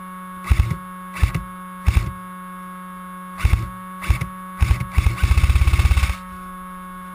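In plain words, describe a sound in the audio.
An airsoft gun fires single shots, then a rapid burst.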